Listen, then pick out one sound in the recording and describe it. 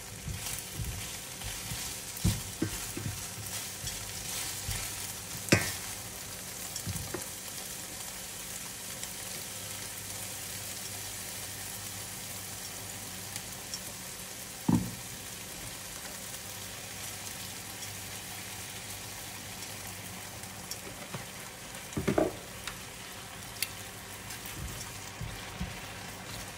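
Metal tongs clink and scrape against a frying pan.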